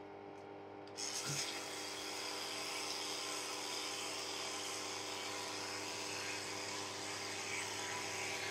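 An electric toothbrush buzzes steadily close by.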